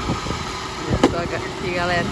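A plastic crate knocks down onto a stack of crates.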